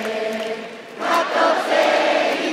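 A crowd of fans cheers loudly nearby.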